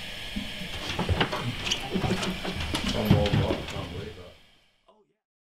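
An electric guitar plays loudly through an amplifier.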